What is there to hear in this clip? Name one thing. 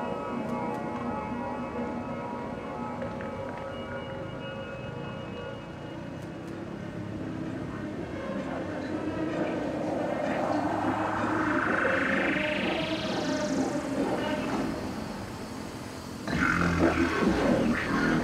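Electronic music plays loudly over outdoor loudspeakers.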